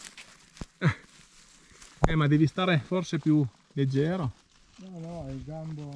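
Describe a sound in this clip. A hand twists a mushroom out of the ground, rustling leaves and moss.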